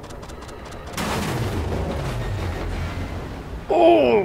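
A large explosion rumbles and roars.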